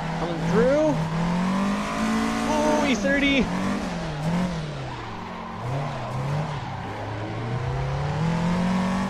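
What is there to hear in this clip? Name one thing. A racing car engine drones, its pitch rising and falling as it shifts and accelerates.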